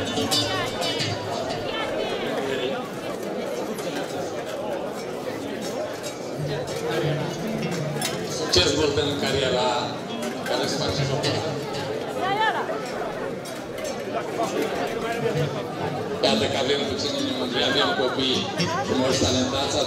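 A saxophone plays a lively tune outdoors.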